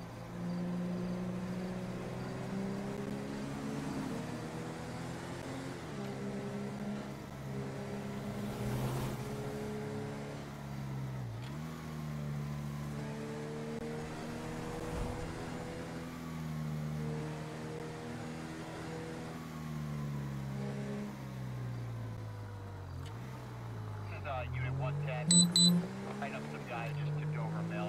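A car engine drones steadily and rises and falls in pitch as the gears change.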